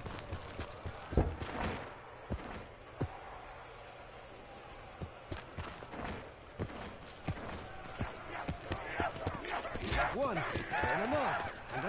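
Footsteps thud steadily on sand.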